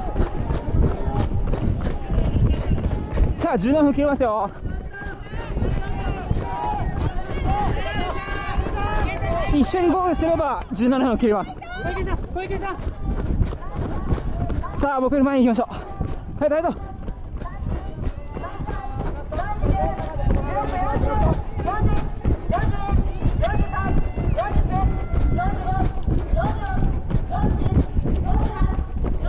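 Running footsteps pound steadily on a track.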